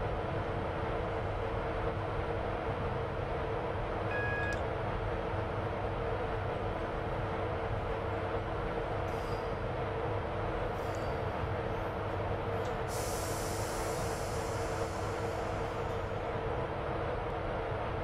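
Train wheels rumble on the rails.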